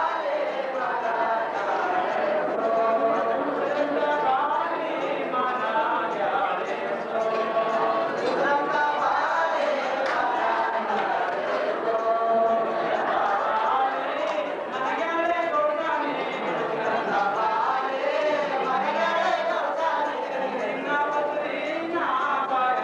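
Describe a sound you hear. A woman sings a slow, drawn-out melody through a loudspeaker.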